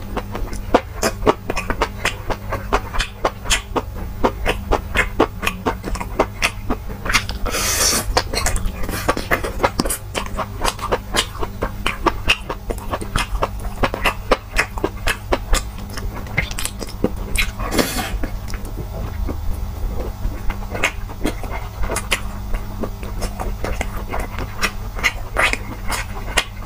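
A young man chews food wetly and loudly, close to a microphone.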